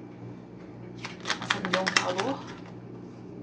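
Cards riffle and flutter quickly as they are shuffled by hand.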